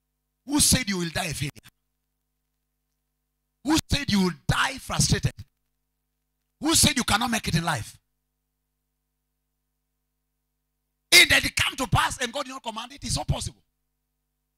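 A man preaches through a microphone in short, forceful phrases, with long pauses between.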